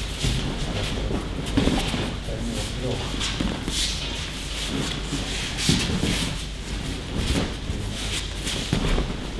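Bare feet shuffle and slide on a mat.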